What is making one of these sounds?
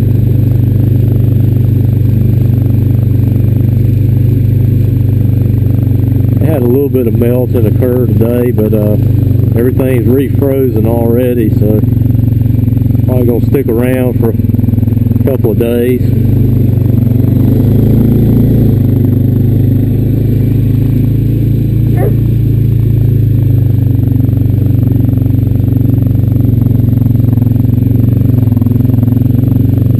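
A quad bike engine rumbles steadily close by.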